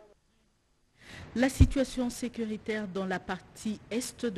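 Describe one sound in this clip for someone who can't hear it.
A woman reads out calmly and clearly into a close microphone.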